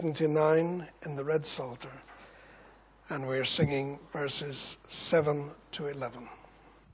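A man reads aloud calmly into a microphone in an echoing room.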